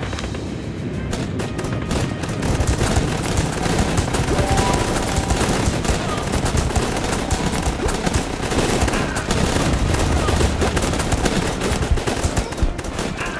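Rapid gunfire crackles without a break.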